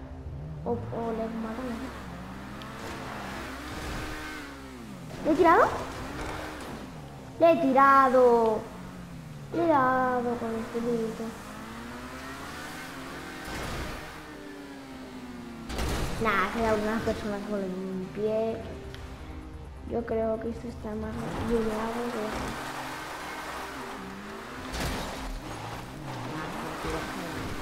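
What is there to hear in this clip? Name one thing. A supercar engine revs hard and shifts through its gears.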